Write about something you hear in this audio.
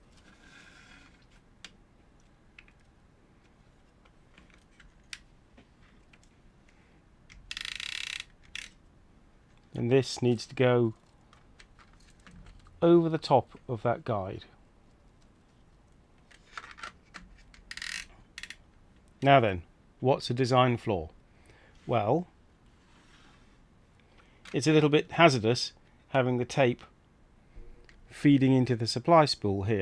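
Small plastic parts click and tap softly as fingers handle a tape reel.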